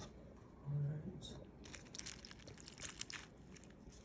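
Milk pours and splashes onto dry cereal in a bowl.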